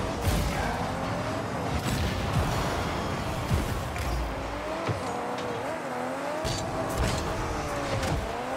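A video game car engine hums and revs, rising and falling in pitch.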